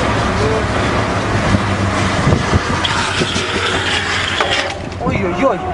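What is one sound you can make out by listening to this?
Longboard wheels roar and slide on asphalt at speed.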